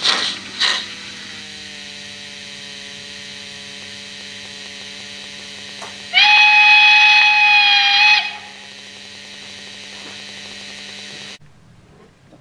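A steam locomotive hisses steadily at rest.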